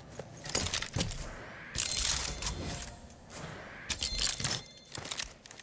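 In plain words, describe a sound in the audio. Menu buttons click and chime.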